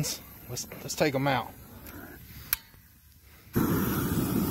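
A gas torch roars with a steady hissing flame.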